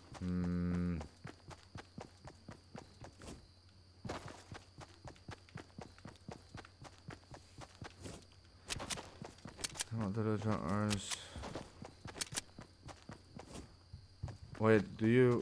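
Quick footsteps run across grass.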